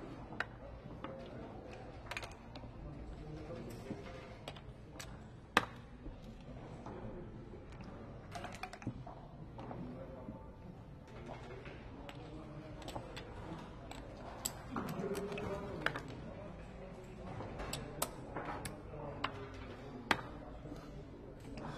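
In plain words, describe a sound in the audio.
Plastic checkers click and slide on a wooden board.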